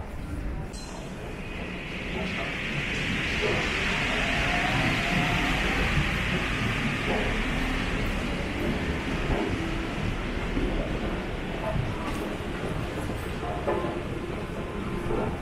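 A metro train hums and hisses nearby.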